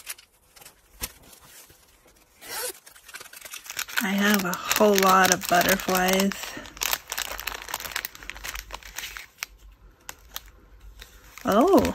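A plastic pouch crinkles as it is handled.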